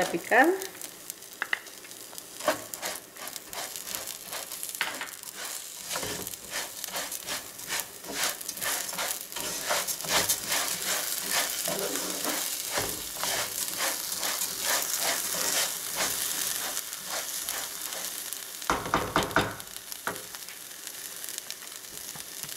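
A wooden spoon scrapes and stirs rice in a pan.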